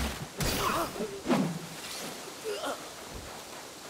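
A large beast growls and snarls.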